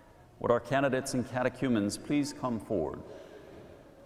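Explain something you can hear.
A man chants through a loudspeaker, echoing in a large hall.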